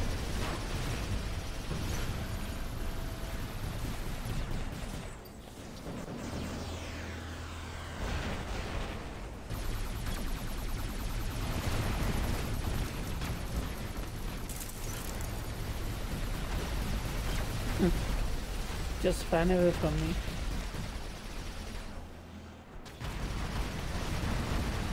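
Robot guns fire in rapid bursts.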